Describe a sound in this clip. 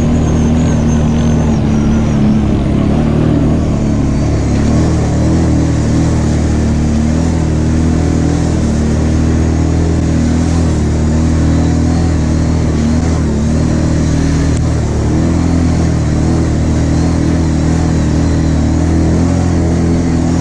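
Tyres squelch and splash through mud.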